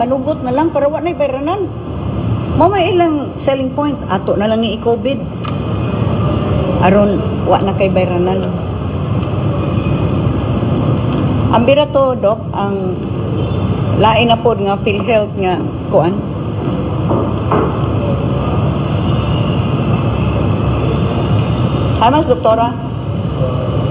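A middle-aged woman speaks calmly through a television loudspeaker.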